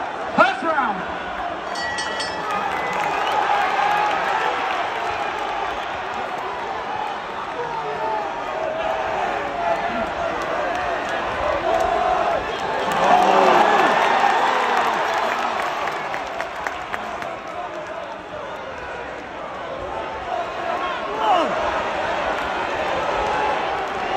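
A large crowd cheers and shouts in a big echoing arena, swelling loudly for a moment.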